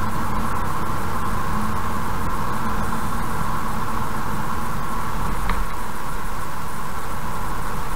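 Car tyres rumble steadily on a road.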